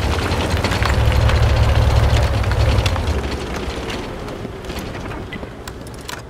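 A tank engine rumbles loudly as the tank drives forward.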